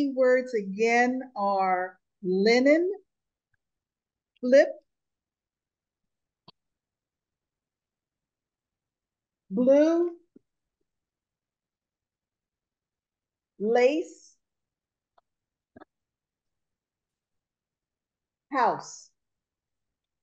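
An elderly woman speaks in short bursts, heard through an online call.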